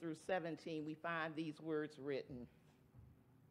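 A woman speaks with feeling through a microphone.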